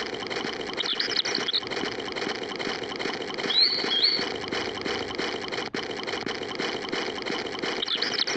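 A fishing reel whirs as line is wound in.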